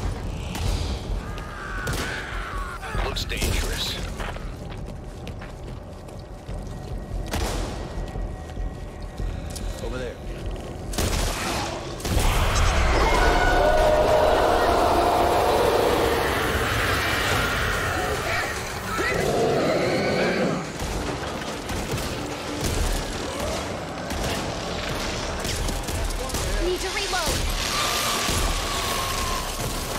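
A shotgun fires loud, repeated blasts.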